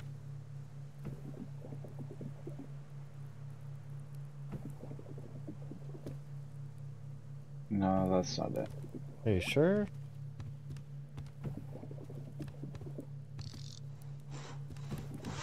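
A man talks quietly into a close microphone.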